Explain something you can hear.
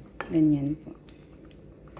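A wooden spoon scrapes and stirs a thick stew in a pan.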